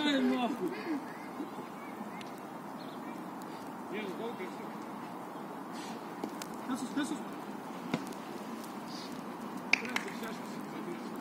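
Young men call out to each other in the distance outdoors.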